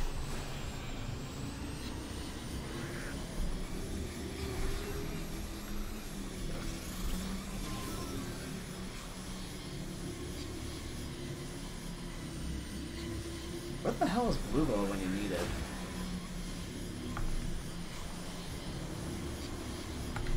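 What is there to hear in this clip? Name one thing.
A hovering board hums steadily as it glides along.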